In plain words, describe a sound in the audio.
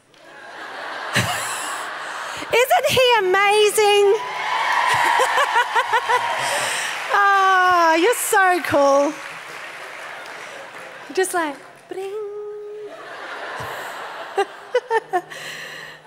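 A middle-aged woman laughs into a microphone.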